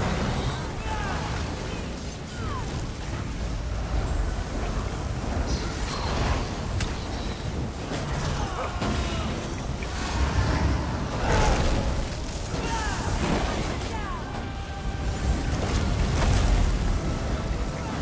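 Combat impacts thud and clash repeatedly.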